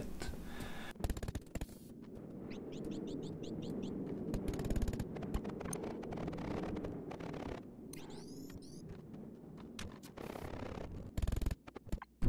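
A humming energy beam whirs steadily as blocks are cut apart.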